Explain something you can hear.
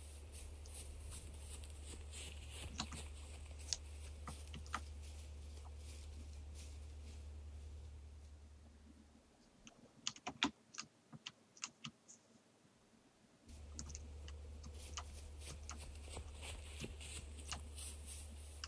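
Light footsteps patter on the ground.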